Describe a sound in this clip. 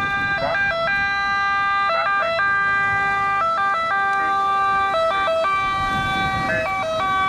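An ambulance engine hums as it drives past.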